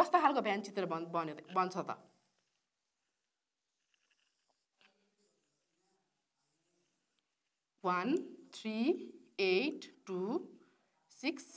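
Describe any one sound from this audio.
A woman explains calmly into a close microphone.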